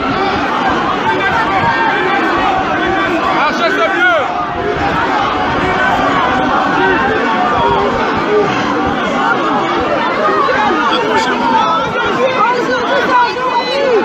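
A large crowd chatters and calls out close by.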